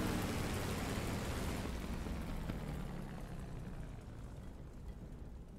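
A propeller aircraft engine rumbles and slowly dies away.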